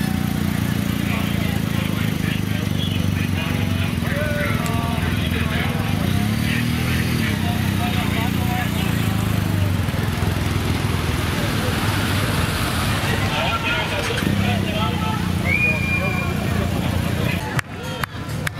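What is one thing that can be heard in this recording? An engine idles and rumbles close by.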